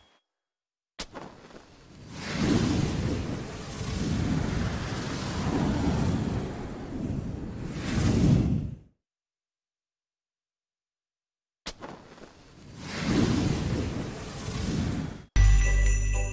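A game effect roars and whooshes in swelling bursts.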